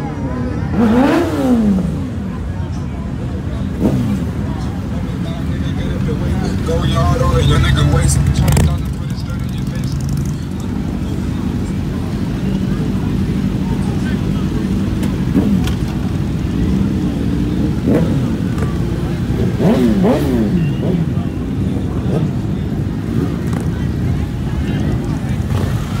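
Motorcycle engines idle and rumble steadily outdoors.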